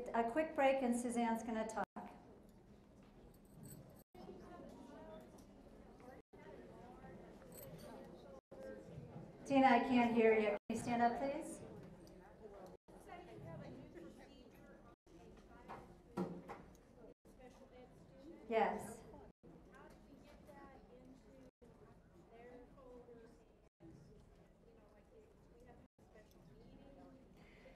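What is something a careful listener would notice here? A crowd of women murmurs and chatters in the background.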